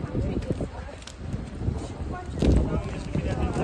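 Heels click on paving stones as a woman walks.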